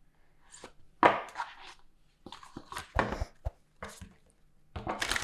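Cards shuffle and tap against each other.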